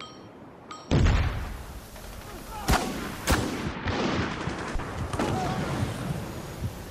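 Assault rifle shots ring out in short bursts.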